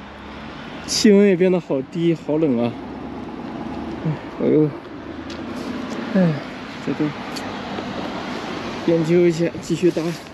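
A man talks casually close to the microphone.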